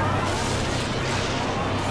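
An energy beam fires with a loud roaring blast.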